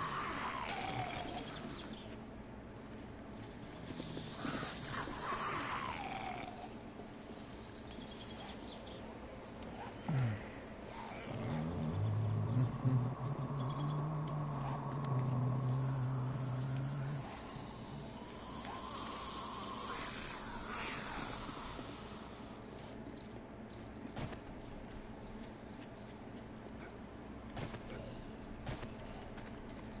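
Footsteps crunch through dry grass.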